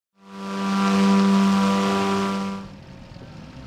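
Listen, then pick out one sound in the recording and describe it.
A small jet engine whines loudly, then cuts off.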